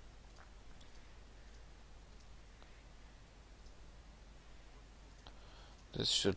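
Soft mouse clicks tick now and then.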